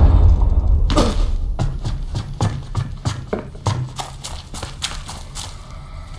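Footsteps thud on wooden boards and stairs.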